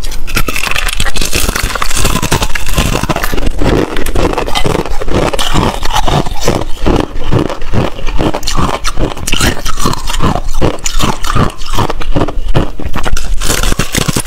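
A young woman bites into crackly food with a sharp crunch.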